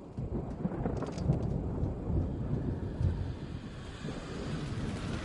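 Strong wind roars in gusts outdoors.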